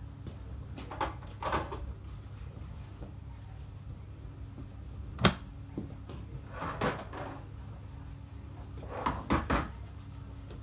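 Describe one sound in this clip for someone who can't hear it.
Dishes and bottles clink and knock.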